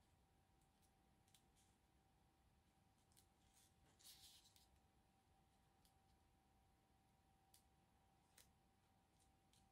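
Paper rustles and crinkles softly as hands handle it.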